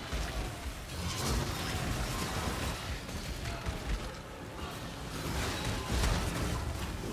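A game's spells crackle and explode in rapid bursts.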